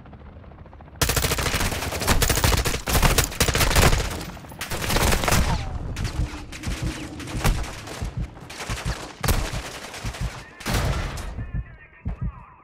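Rapid gunshots crack loudly in bursts.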